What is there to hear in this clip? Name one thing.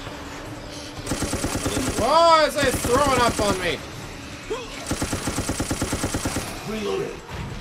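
A gun fires rapid, loud bursts.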